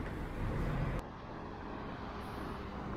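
A small truck drives by.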